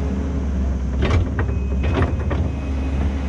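A skid steer loader's bucket knocks and scrapes on the ground.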